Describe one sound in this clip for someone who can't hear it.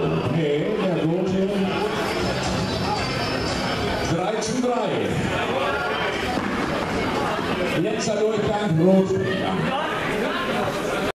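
A crowd of people talk and chatter nearby.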